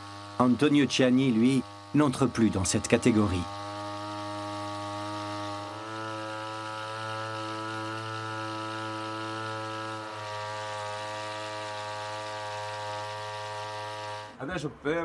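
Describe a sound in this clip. A sprayer hisses as it sprays liquid.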